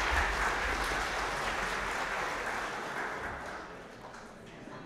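An organ plays a loud chord that fades away.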